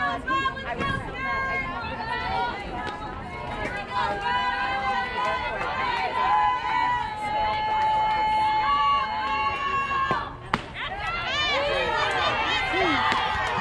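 Young girls chant and cheer loudly in unison outdoors.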